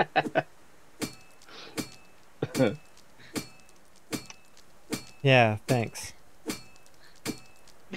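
A pickaxe strikes rock with repeated sharp clinks.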